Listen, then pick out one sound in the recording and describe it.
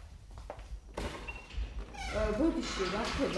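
A metal gate rattles and creaks.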